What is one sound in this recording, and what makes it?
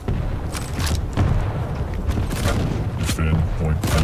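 A shotgun fires loud blasts.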